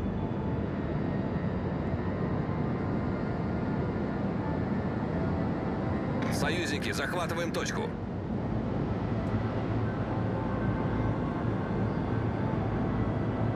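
A warship's engines rumble low and steady over the sea.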